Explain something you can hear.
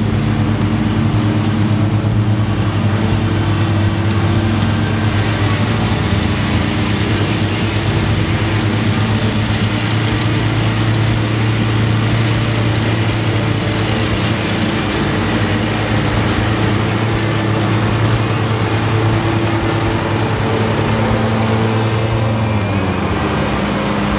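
Lawn mower engines drone steadily nearby, outdoors.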